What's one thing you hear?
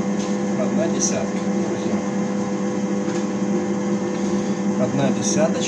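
A lathe motor hums steadily as the chuck spins.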